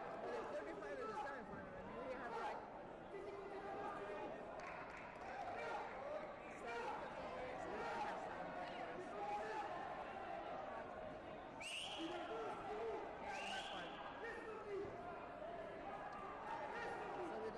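Many voices murmur and chatter throughout a large echoing hall.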